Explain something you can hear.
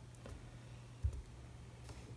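A plastic stamp block taps down on a table.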